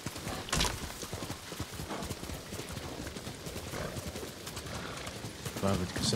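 Horse hooves thud steadily on soft ground.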